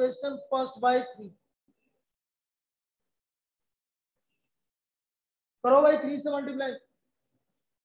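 A man speaks calmly and clearly, explaining.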